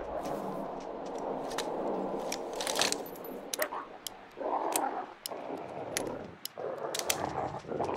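A revolver clicks and rattles as it is reloaded.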